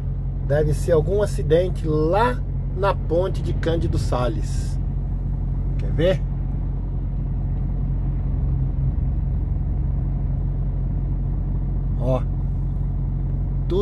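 A vehicle's engine rumbles steadily from inside the cabin.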